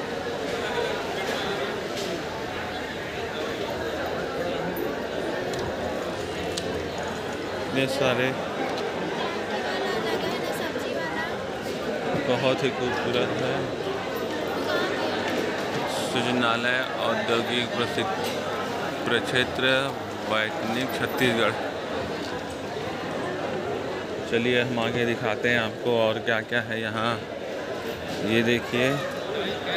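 A crowd murmurs and chatters indoors.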